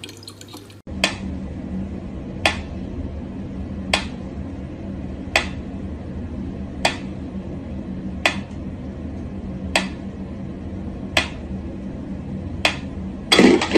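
A metronome ticks at a slow, steady pace.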